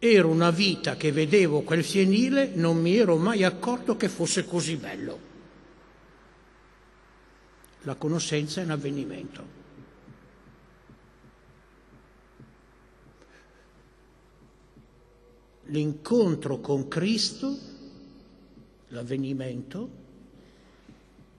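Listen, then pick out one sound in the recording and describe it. An elderly man speaks emphatically into a microphone, with long pauses.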